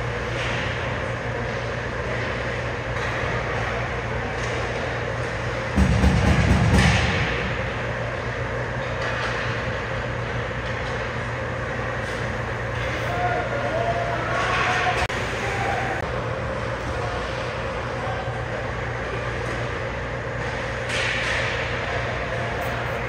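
Skates scrape and glide across ice in an echoing rink.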